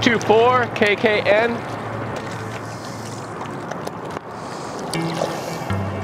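Water laps gently against stones.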